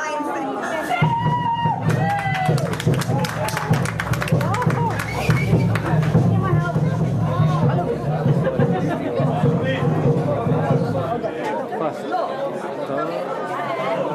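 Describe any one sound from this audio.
Drummers pound hand drums in a fast, steady rhythm.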